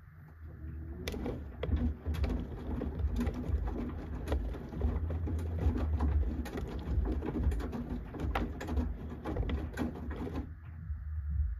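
Wet laundry thumps and sloshes inside a washing machine drum.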